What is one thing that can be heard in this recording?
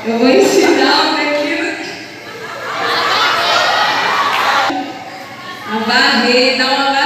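A woman sings through a microphone and loudspeakers in an echoing hall.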